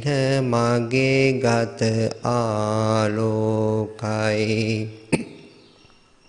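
A man chants in a steady, drawn-out voice close to a microphone.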